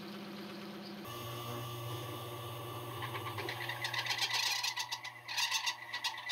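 A hole saw screeches as it cuts through sheet metal.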